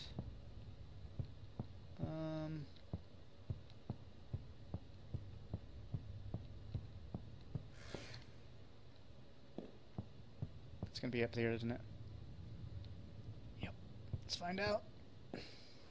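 Footsteps tap on a hard floor in an echoing hall.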